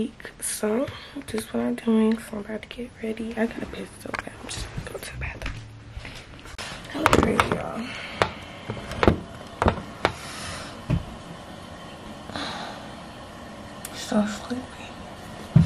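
A young woman speaks close up, casually.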